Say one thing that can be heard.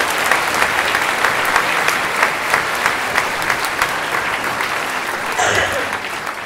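An orchestra plays in a large hall.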